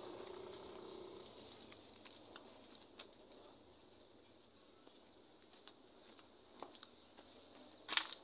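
Flip-flops shuffle and scuff on dirt ground.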